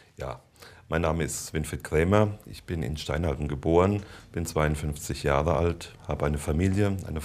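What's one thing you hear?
A middle-aged man answers calmly into a microphone.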